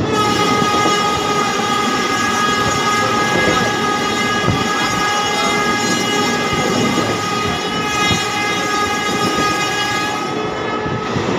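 A train's motor hums with a steady whine.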